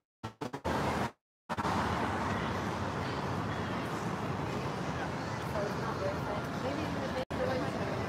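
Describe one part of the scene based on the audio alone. A car drives past on the street.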